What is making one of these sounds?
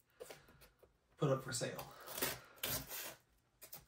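A knife blade slits packing tape on a cardboard box.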